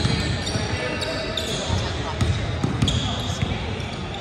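A basketball bounces on a wooden floor with dull thumps.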